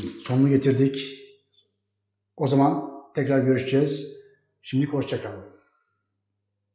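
An older man speaks calmly close to a microphone.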